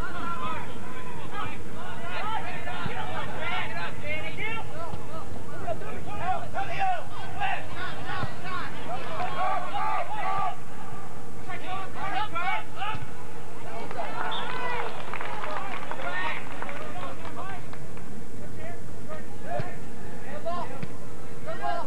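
Young players shout to each other across an open field outdoors.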